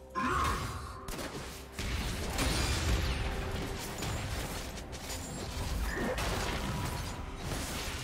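Low rumbling combat impacts thud.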